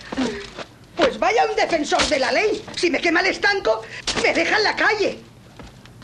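A woman shouts in alarm.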